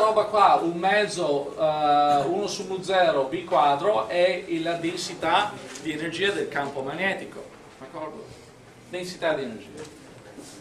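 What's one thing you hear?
A middle-aged man lectures calmly, heard from a distance in a room.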